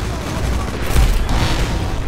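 An explosion bursts close by.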